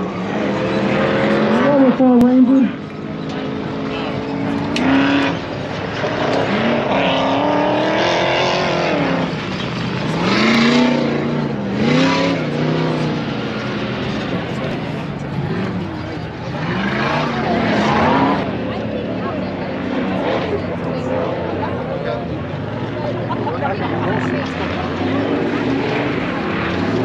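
Motorbike engines rev and whine at a distance, rising and falling in pitch.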